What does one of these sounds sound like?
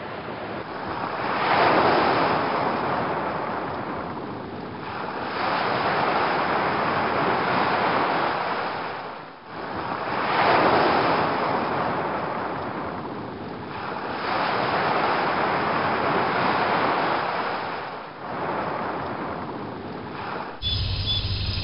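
Waves break and wash up on a beach in rolling surges.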